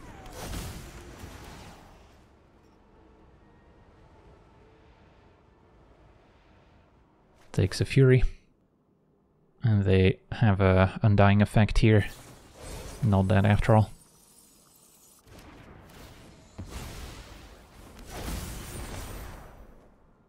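A magical swoosh sounds as a spell streaks across.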